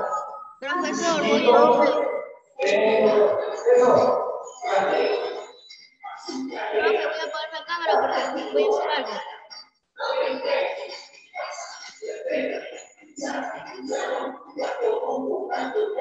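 Children sing along through an online call.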